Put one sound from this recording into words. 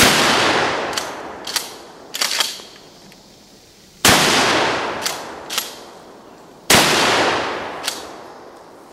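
Bullets clang against metal targets.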